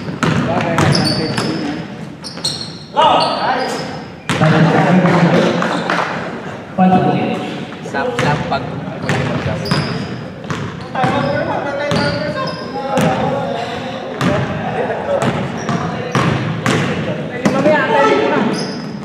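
Men shout and call out during the game.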